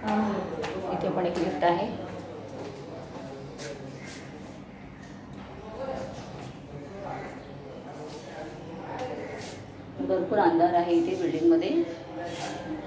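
A woman speaks close to the microphone in a calm voice.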